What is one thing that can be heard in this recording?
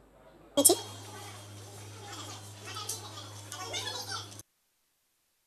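Pens scratch on paper.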